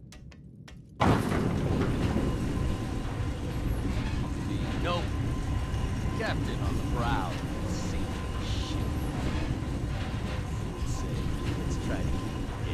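Heavy machinery rumbles low and steadily.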